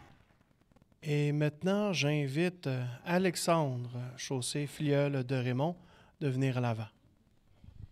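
An elderly man speaks slowly into a microphone, heard through a loudspeaker in a room.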